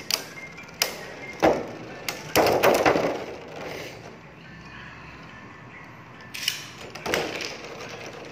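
Spinning tops clash and clatter against each other with sharp metallic clicks.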